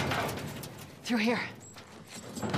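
A young woman speaks briefly and calmly.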